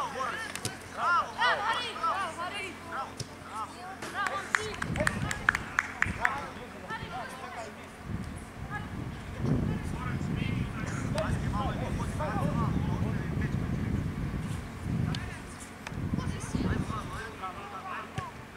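Young players shout and call out to each other on an open field.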